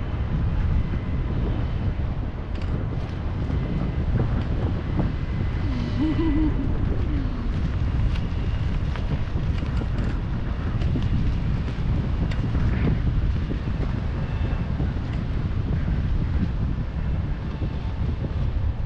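Strong wind rushes and buffets loudly, outdoors high in the air.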